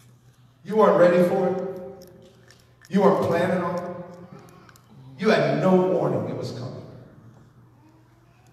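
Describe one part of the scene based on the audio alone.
A man sings loudly into a microphone in a large echoing hall, in long held phrases.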